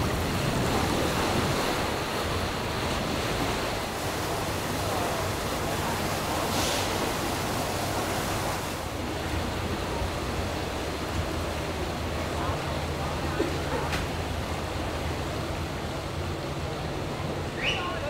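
A boat's engine hums low and steady.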